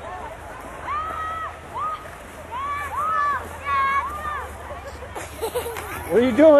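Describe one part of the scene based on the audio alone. A young boy laughs loudly close by.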